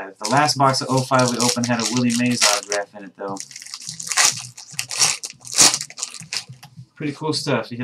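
Foil wrapping crinkles as it is torn open.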